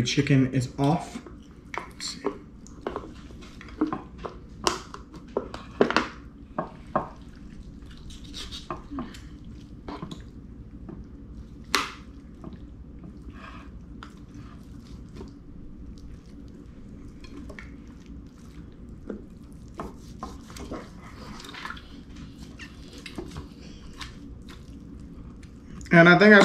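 A knife and fork clink and scrape on a plate.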